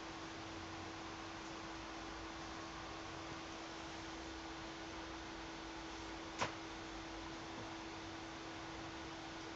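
A cat licks another cat's fur softly, close by.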